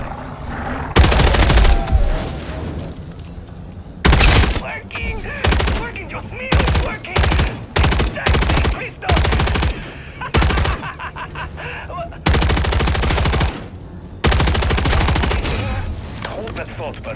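A gun fires in loud bursts, echoing in a large hall.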